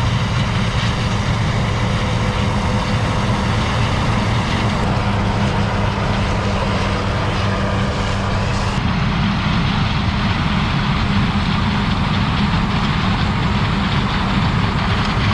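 A diesel combine harvester drones as it harvests corn.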